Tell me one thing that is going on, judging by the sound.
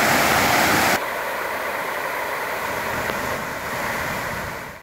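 Water pours steadily from a weir into a pool, heard from a little way off.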